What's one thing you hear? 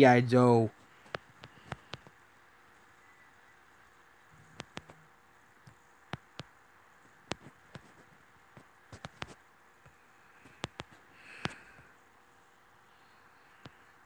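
Fingers tap softly on a touchscreen keyboard.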